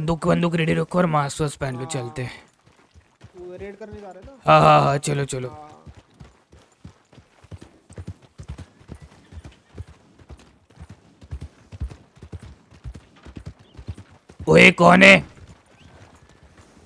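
A horse's hooves thud steadily on dirt as it trots.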